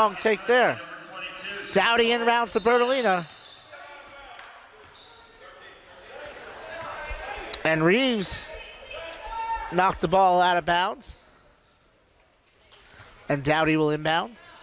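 A basketball thuds as it bounces on the court.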